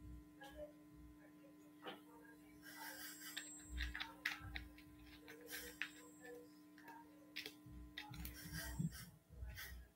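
A plastic bottle crinkles and rattles in a hand.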